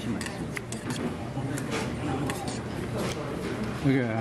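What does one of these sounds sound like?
Chopsticks clink against a metal pot.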